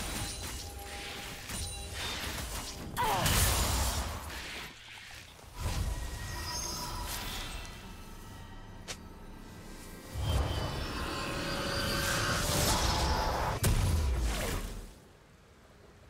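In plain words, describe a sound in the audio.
Video game spell effects burst and crackle during a fight.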